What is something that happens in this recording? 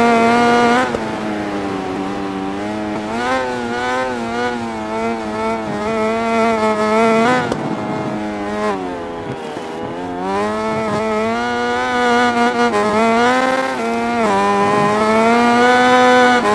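A motorcycle engine revs high, its pitch rising and falling with gear changes and braking.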